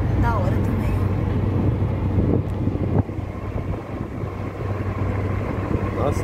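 A car engine rumbles steadily from inside a moving vehicle.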